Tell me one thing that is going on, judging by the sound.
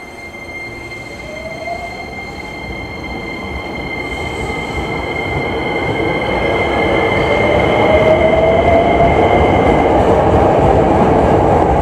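A train's electric motors whine, rising in pitch.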